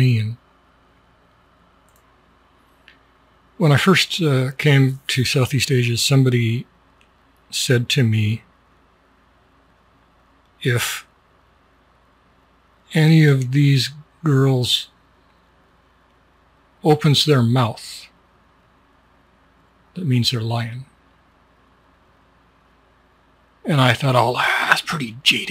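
A middle-aged man speaks calmly and close into a microphone, in short phrases with pauses.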